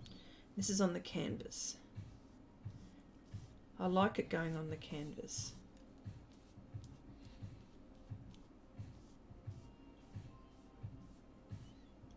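A paintbrush scrapes softly across paper.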